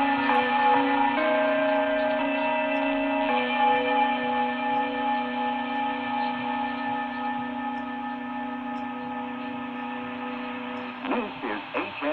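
A shortwave radio gives off steady humming tones over hiss.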